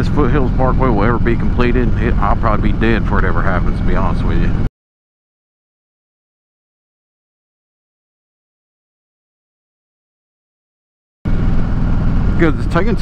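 A motorcycle engine rumbles steadily.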